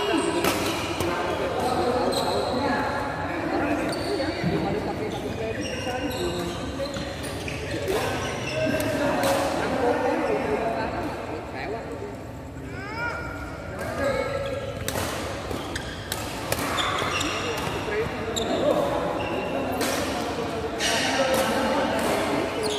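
Rackets strike a shuttlecock in sharp pops that echo around a large hall.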